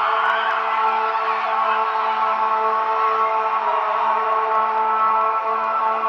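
Women players shout and cheer in celebration outdoors.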